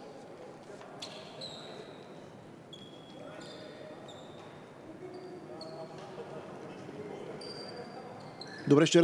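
Sneakers squeak briefly on a wooden court in an echoing hall.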